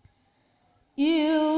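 Young women begin singing together loudly through microphones.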